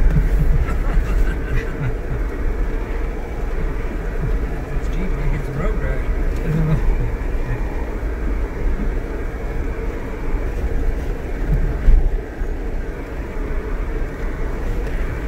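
A vehicle engine rumbles low and steady as it drives slowly.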